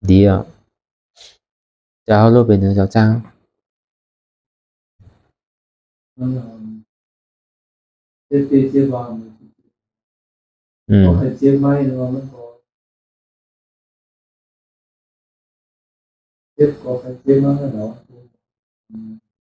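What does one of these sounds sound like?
A man speaks calmly and slowly in bursts with pauses, close to a microphone.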